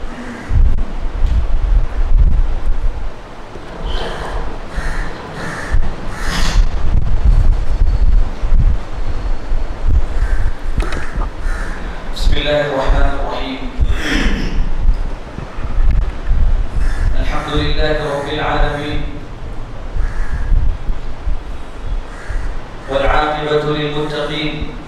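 A young man speaks into a microphone through a loudspeaker in an echoing room.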